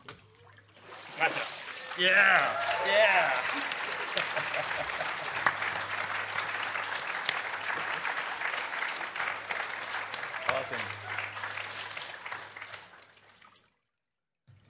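Hands clap in applause.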